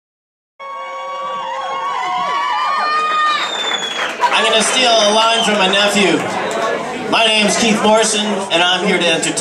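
A man sings into a microphone over a loudspeaker system.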